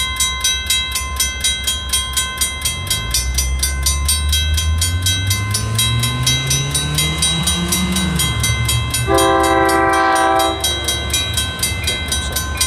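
Railway crossing bells ring rapidly and steadily.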